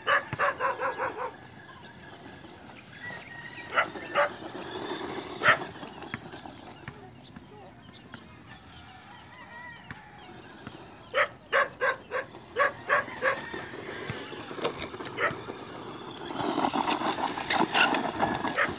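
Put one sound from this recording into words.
A toy car's electric motor whines as it drives over dirt.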